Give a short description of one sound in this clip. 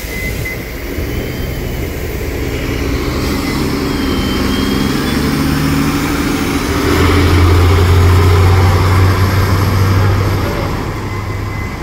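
A bus pulls away with a deep engine roar that rises and fades.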